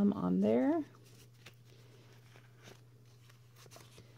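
Stiff paper cards rustle and tap softly as they are handled.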